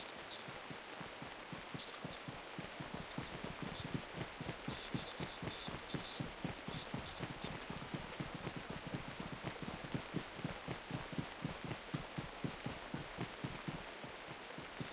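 Footsteps run quickly through tall grass.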